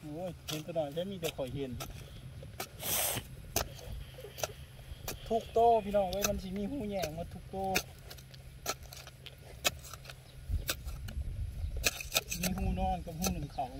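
A digging stick thuds and scrapes into hard soil.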